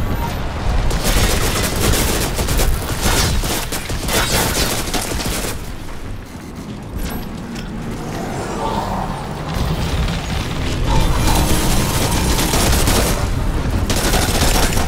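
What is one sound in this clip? Gunfire and heavy blasts crack and rumble nearby.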